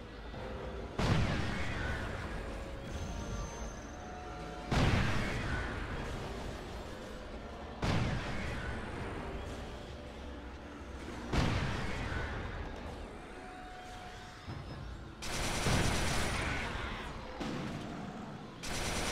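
Heavy blasts boom every few seconds, each rumbling and fading slowly.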